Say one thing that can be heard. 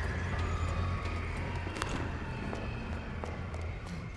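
Hands and feet clank on a metal ladder during a climb.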